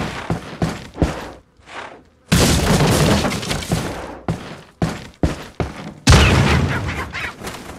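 Footsteps thump on wooden floorboards.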